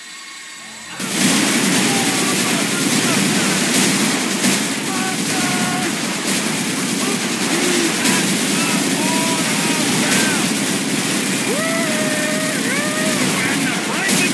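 A rotary machine gun fires in a long, roaring burst.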